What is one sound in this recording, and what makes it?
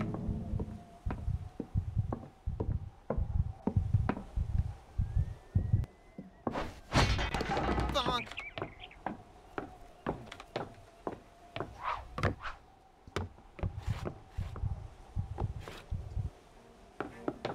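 Small footsteps patter across a floor.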